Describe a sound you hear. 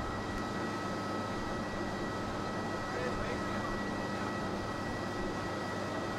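A jet airliner's engines whine as it taxis.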